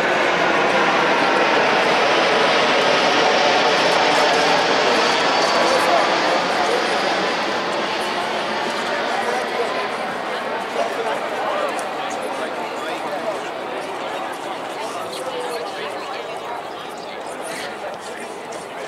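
A crowd of spectators chatters and cheers nearby, gradually quieting.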